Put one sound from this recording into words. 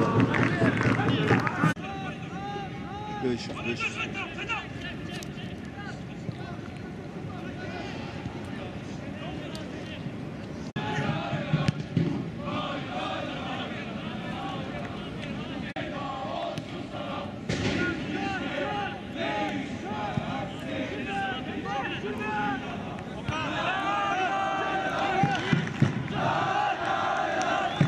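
A crowd murmurs and cheers in an open-air stadium.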